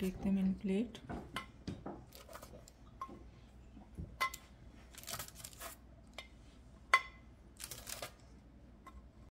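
Crisp biscuits clink and tap onto a hard plate.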